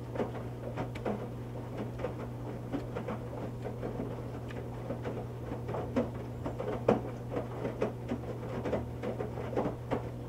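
A washing machine drum hums steadily as it turns.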